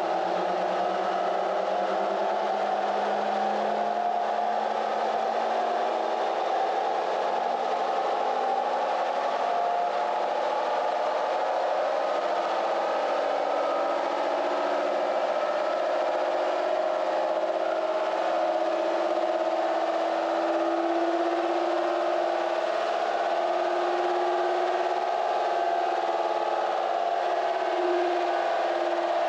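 A truck engine roars loudly, its pitch slowly rising as it revs.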